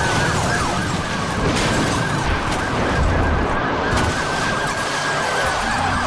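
Metal crunches as cars crash.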